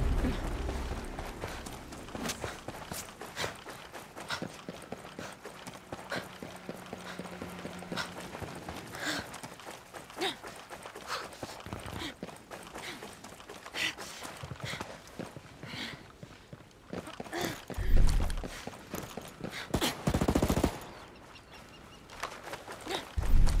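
Boots thud quickly on dirt and concrete as a soldier runs.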